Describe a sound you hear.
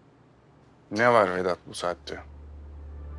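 A man speaks into a phone.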